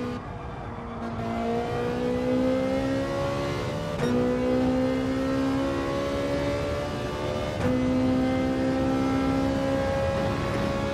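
A race car engine revs up steadily through the gears, its pitch climbing and dropping sharply at each gear change.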